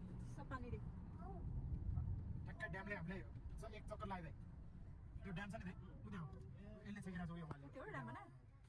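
Tyres rumble along a road.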